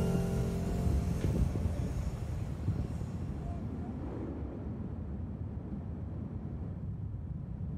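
Wind rushes past loudly, buffeting in strong gusts.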